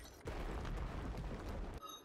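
A sword swishes and strikes in a fight.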